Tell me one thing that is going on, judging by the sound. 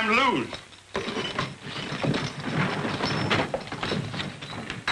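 Men scuffle and struggle noisily.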